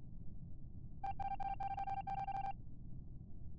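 Electronic blips tick rapidly as letters type out one by one.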